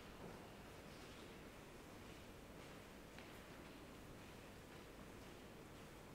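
Footsteps tap on a hard floor in a large, echoing room.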